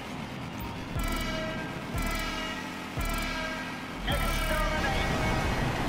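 A countdown beeps once a second, with a longer, higher tone at the end.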